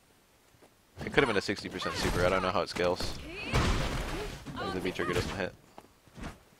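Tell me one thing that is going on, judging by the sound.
Heavy punches and throws land with loud thuds.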